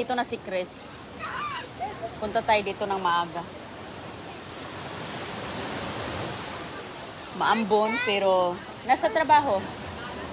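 A young woman talks casually close by.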